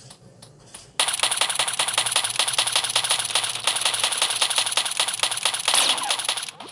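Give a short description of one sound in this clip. Pistols fire in rapid bursts of gunshots.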